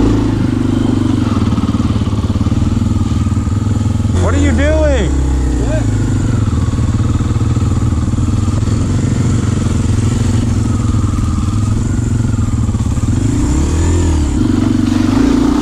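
A dirt bike engine idles steadily up close.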